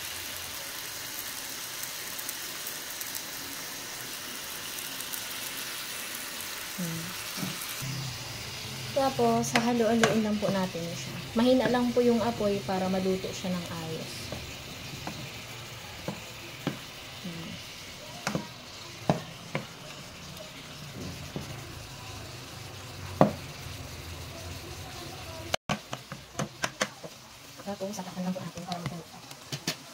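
Meat sizzles gently in a pot.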